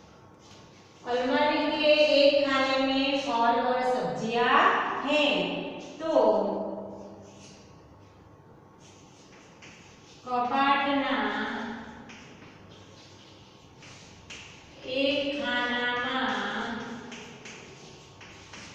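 A woman speaks clearly in a slow, teaching voice.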